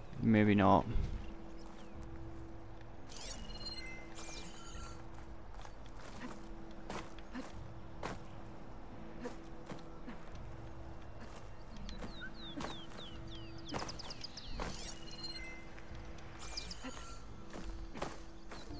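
A climber's hands and feet scrape and knock against rock.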